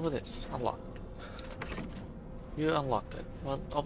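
A metal lock clicks open.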